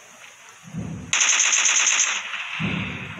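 Rifle shots ring out in quick succession.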